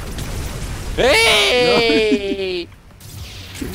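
A young man laughs into a close microphone.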